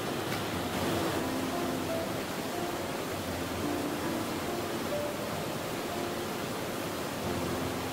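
Water in a shallow river flows steadily.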